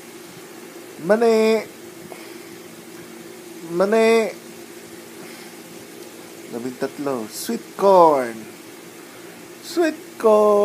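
A man close by sings short, drawn-out phrases with pauses between them.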